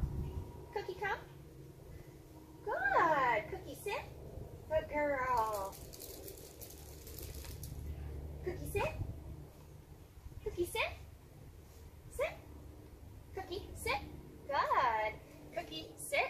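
A young woman speaks to a dog in a high, cheerful, encouraging voice.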